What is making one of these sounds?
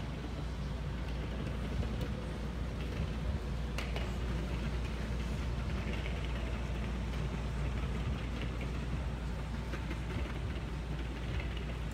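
Sneakers scuff softly on a carpeted floor.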